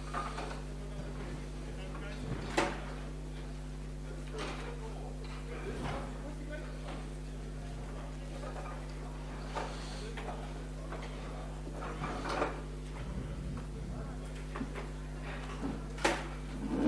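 A crowd of people murmurs and chatters in a large echoing hall.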